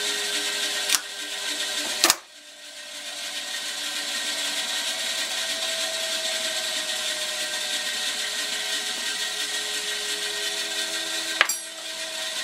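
Metal tools clink against each other.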